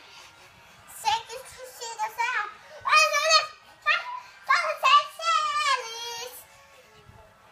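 A young girl squeals excitedly close by.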